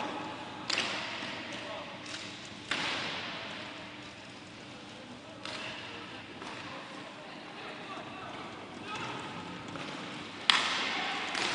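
Hockey sticks strike a ball with sharp clacks, echoing in a large hall.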